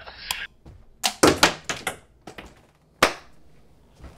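Darts thud into a dartboard.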